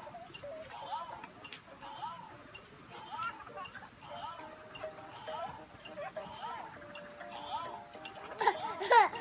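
A toy plays a short repeating electronic tune.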